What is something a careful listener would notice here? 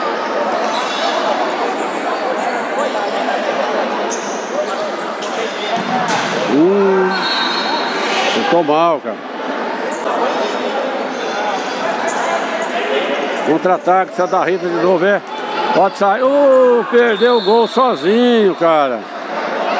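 A crowd of spectators chatters and murmurs in a large echoing hall.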